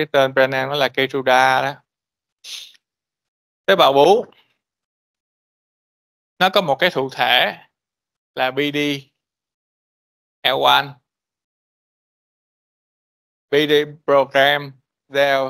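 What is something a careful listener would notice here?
A man lectures calmly over an online call, speaking in short bursts with pauses.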